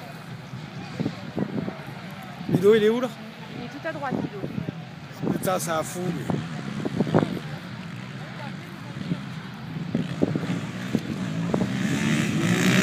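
Quad bike engines idle and rev at a start line outdoors.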